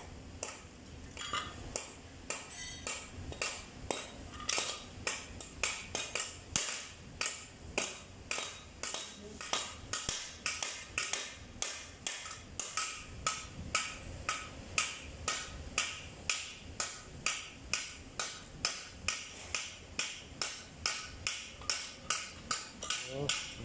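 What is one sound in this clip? A hammer strikes metal in quick, steady blows.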